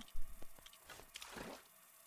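A magic spell crackles and zaps.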